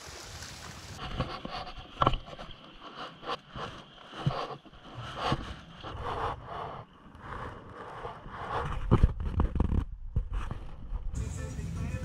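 A kayak paddle dips and splashes in calm water.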